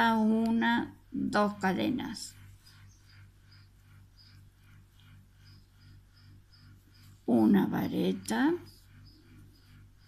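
A crochet hook softly rubs and clicks through yarn.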